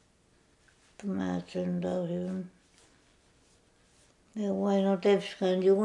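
An elderly woman speaks slowly, close by.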